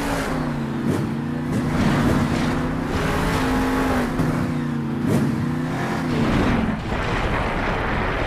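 Heavy tyres thud onto dirt after jumps.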